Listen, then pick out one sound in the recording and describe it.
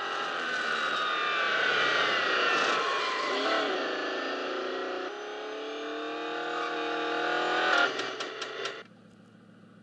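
A race car engine roars at high revs and shifts gears.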